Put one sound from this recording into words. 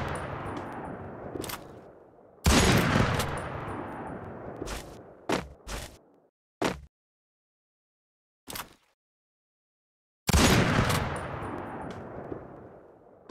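A sniper rifle fires with a loud crack and a long rolling echo.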